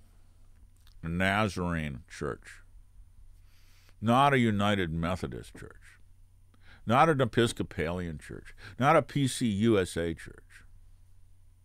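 An elderly man talks calmly and close to a microphone, in short bursts.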